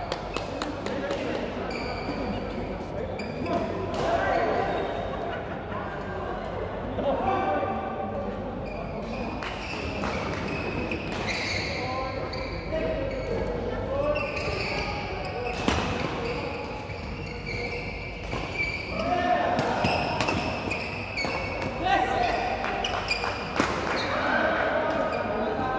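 A shuttlecock is struck sharply by rackets.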